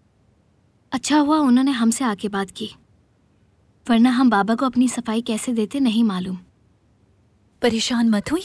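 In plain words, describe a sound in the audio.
Another young woman answers calmly, close by.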